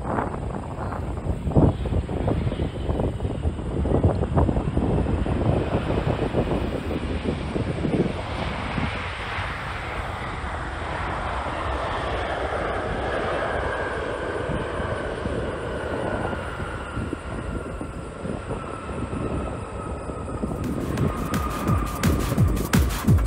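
A jet airliner's engines roar as it rolls along a runway, with a high whine slowly falling in pitch.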